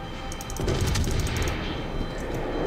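Heavy naval guns fire with a deep boom and a rolling rumble.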